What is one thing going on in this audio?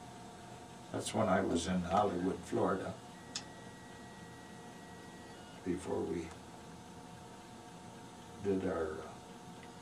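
An elderly man speaks calmly and close by, in short phrases.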